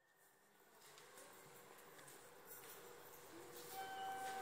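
Footsteps click on a hard floor in a large echoing hall.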